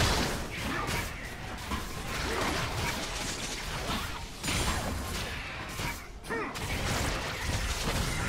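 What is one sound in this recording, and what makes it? Magic spells crackle and whoosh in a video game battle.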